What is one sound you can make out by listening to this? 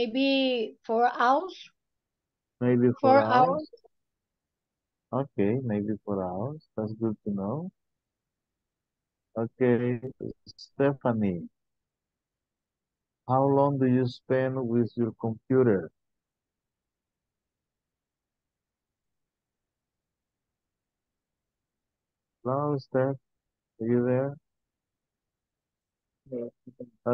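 A middle-aged man speaks calmly through an online call microphone, in short phrases with pauses.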